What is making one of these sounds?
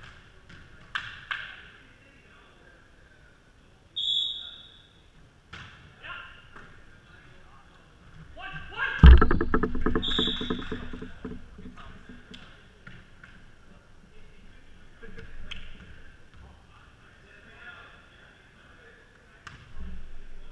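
A volleyball is struck with sharp slaps that echo around a large hall.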